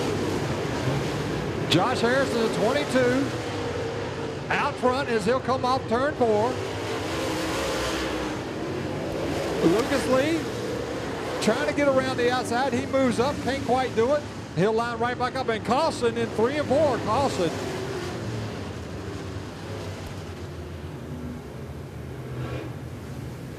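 Race car engines roar and rev loudly.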